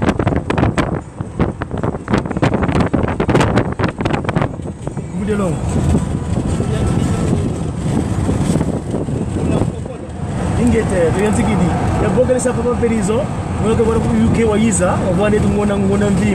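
A car's engine and tyres hum steadily on the road.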